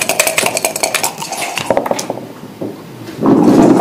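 Dice rattle and tumble onto a board.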